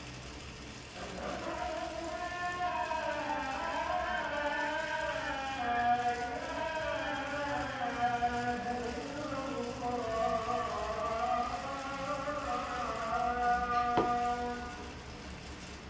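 A young man hums a tune close by.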